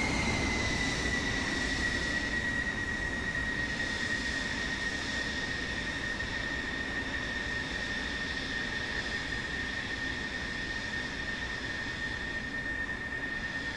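A jet engine whines loudly as a fighter plane taxis away, its whine slowly lowering and fading.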